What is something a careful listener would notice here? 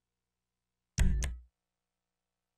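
A menu gives short clicking beeps as a selection changes.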